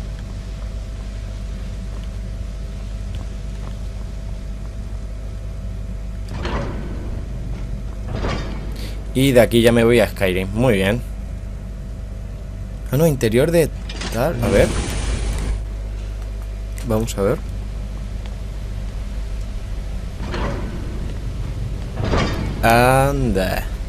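Magic crackles and hums softly.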